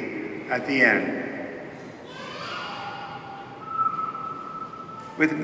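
A man sings a slow chant through a microphone in a large echoing hall.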